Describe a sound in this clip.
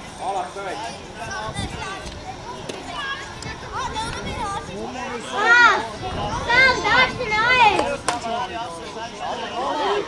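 Young boys shout and call to each other across an open field outdoors.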